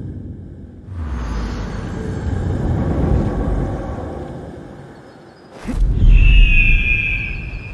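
Air rushes loudly past during a long fall.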